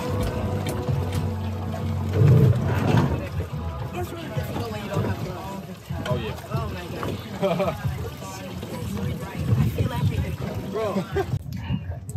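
Water laps and splashes against the back of a boat.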